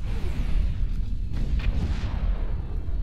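Energy weapons fire with sharp zaps.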